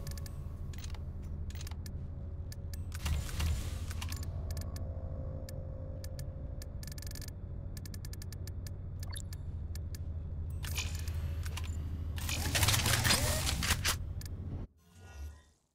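Electronic menu clicks and beeps sound in quick succession.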